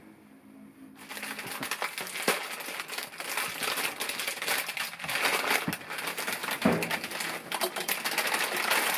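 A plastic snack bag crinkles and rustles.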